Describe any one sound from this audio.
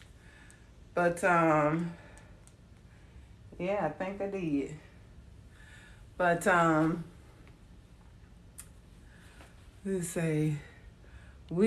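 A woman speaks close by in short, drawn-out bursts with pauses between.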